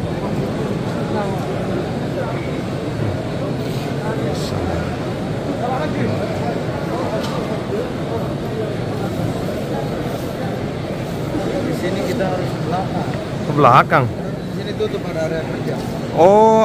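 A large crowd murmurs and chatters all around in a big echoing hall.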